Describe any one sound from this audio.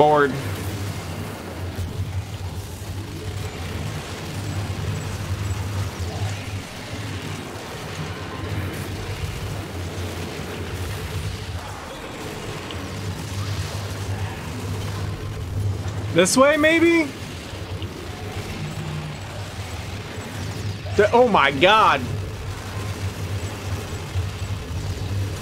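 A steady low rumble drones.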